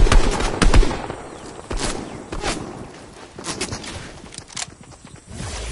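Gunshots crack in short bursts, loud and close.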